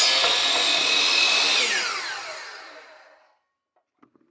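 A power saw's blade whines and winds down to a stop.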